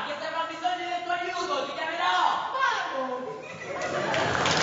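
A man speaks loudly and with animation in a large echoing hall.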